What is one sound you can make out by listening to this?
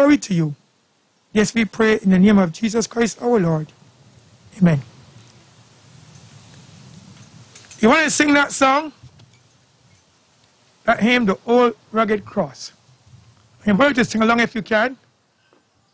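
A man speaks slowly and solemnly into a microphone outdoors, with pauses.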